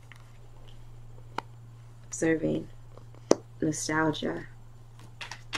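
Playing cards are laid down and slide softly on cloth.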